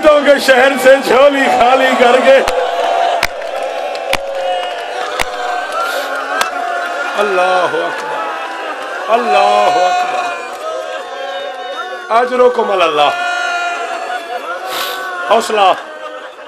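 A man speaks passionately through a microphone.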